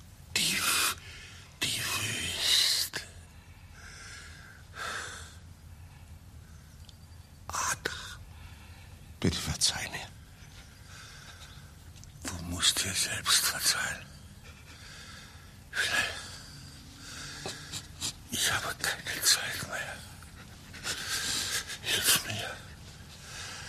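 An elderly man breathes heavily and raspingly through an open mouth.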